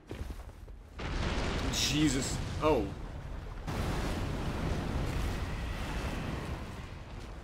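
Water splashes as a figure wades through it.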